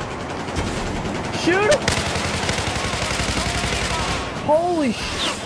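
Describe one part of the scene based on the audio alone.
A rifle fires rapid bursts.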